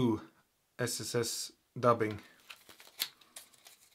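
Plastic packaging crinkles in a man's hands.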